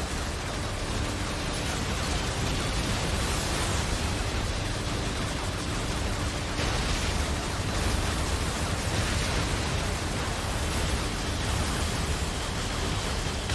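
Gunfire rattles and explosions boom from a video game.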